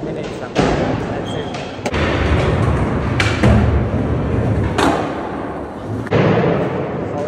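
Skateboard wheels roll and clack on a hard floor.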